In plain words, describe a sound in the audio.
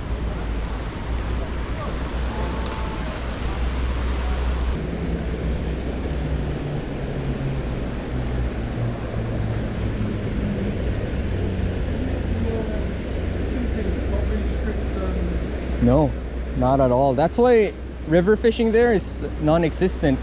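Water rushes loudly over a weir.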